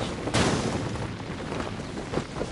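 Fire crackles nearby.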